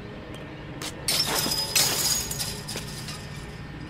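A chain-link fence rattles as someone climbs over it.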